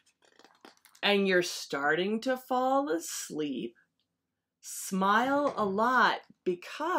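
A woman reads aloud expressively, close to a microphone.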